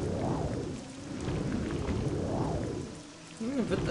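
A magic spell whooshes with a swelling rush.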